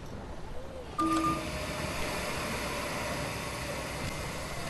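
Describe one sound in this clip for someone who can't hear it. A bus door hisses open.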